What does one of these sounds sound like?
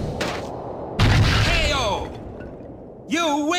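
A heavy blow lands with a loud thud.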